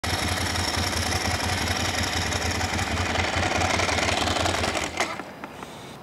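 A motorcycle engine rumbles and revs loudly close by.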